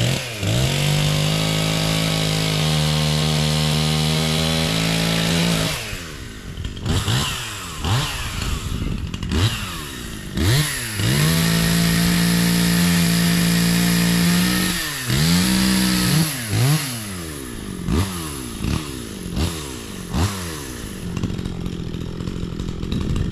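A leaf blower engine roars and revs up and down outdoors.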